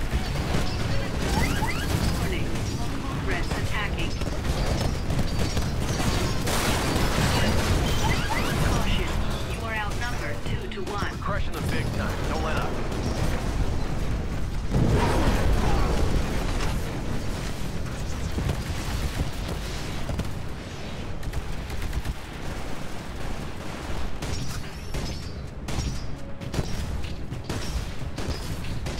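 Heavy gunfire booms and rattles rapidly.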